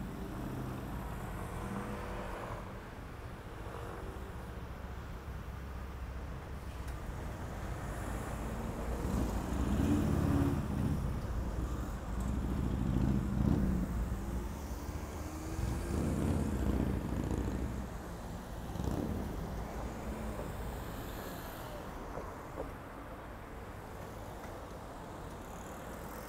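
Outdoors street traffic murmurs steadily in the background.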